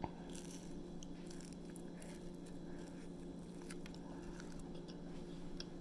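A teenage boy chews food noisily, close by.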